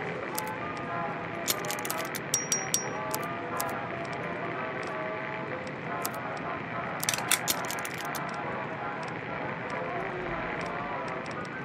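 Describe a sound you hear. Short menu clicks tick now and then.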